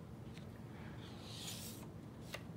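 A page of a book rustles as it is turned.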